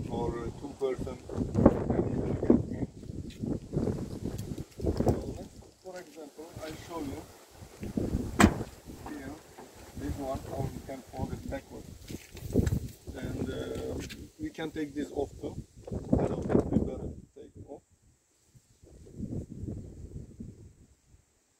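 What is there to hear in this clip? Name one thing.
A man talks calmly, close by, outdoors.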